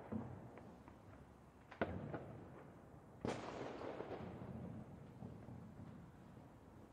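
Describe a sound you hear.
Fireworks burst with loud booms and crackles.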